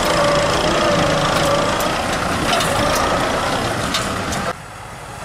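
A diesel tractor engine runs under load.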